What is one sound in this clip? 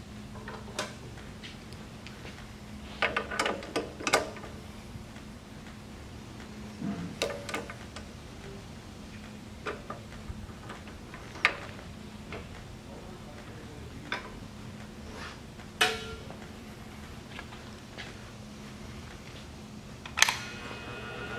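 Metal parts click and clink as a tool's chuck is tightened by hand.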